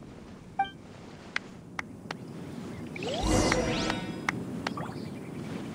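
Short game interface clicks and chimes sound.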